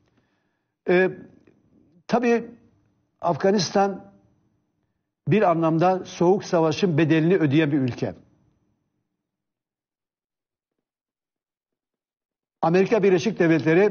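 An elderly man speaks calmly and deliberately into a microphone, pausing between phrases.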